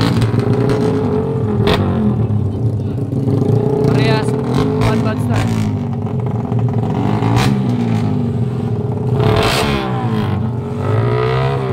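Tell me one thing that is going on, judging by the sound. A motorcycle engine revs loudly and repeatedly nearby.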